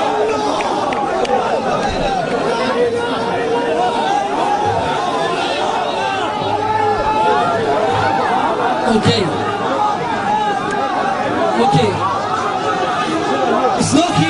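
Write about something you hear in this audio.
A large crowd of men talks and shouts loudly outdoors.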